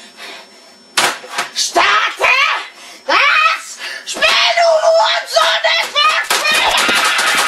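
A young man shouts excitedly close by.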